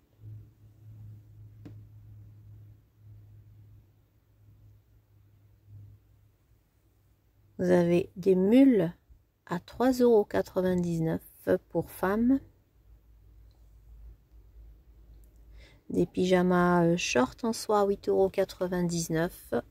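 A hand rustles through piles of clothes.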